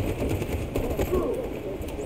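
Rifles fire in sharp bursts.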